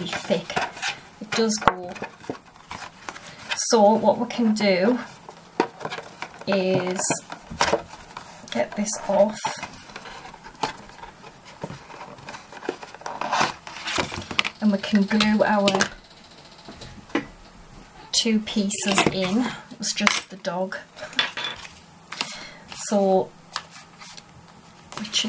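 Stiff card rustles and taps as hands fold and handle it.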